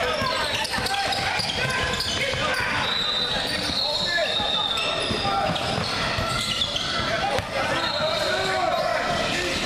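Spectators and young players call out and chatter in the background.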